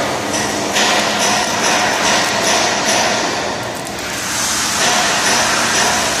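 An arc welder crackles and hisses loudly and steadily.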